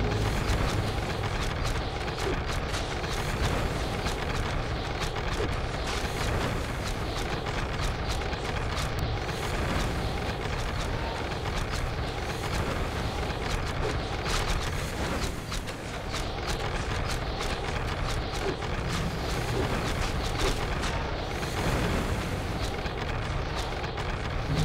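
Magic lightning crackles and zaps again and again.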